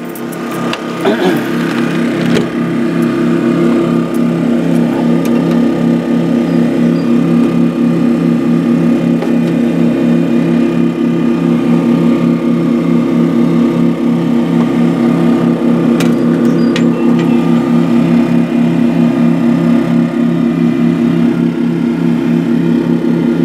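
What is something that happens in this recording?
A furnace blower hums loudly and steadily with a fast throb.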